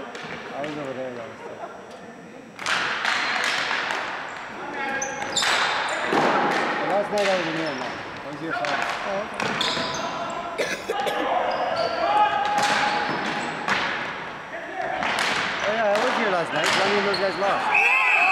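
Men shout to each other during play in a large echoing hall.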